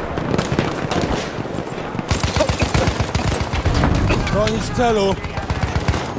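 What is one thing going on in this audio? Gunfire cracks in rapid bursts close by.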